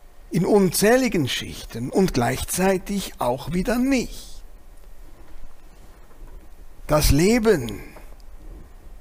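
A middle-aged man sings with feeling into a close microphone, in short phrases with pauses.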